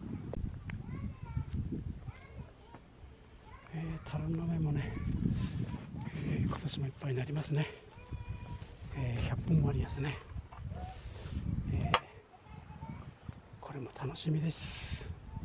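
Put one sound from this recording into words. An elderly man talks calmly, close by, outdoors.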